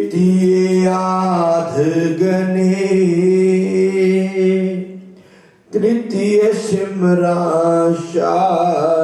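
A man sings in long, held notes through a microphone and loudspeakers.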